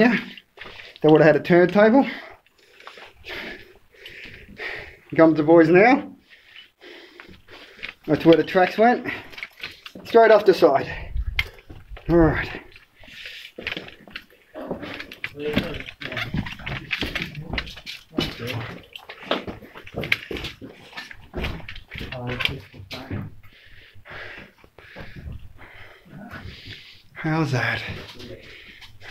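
A man talks with animation nearby, his voice echoing in a rocky tunnel.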